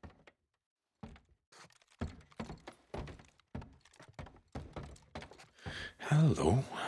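Footsteps thud on a creaky floor.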